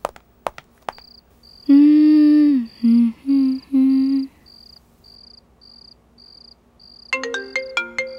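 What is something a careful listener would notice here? A phone rings with a repeating beep.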